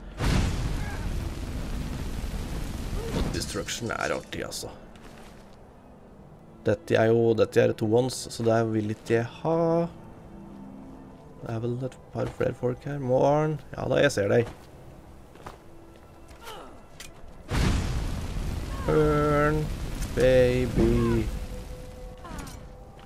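A fire spell roars and crackles.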